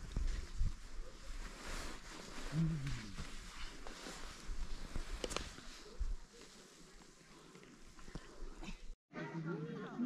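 Wind rumbles and gusts across an open mountainside.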